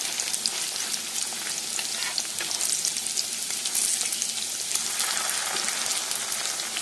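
Patties sizzle and crackle in hot oil.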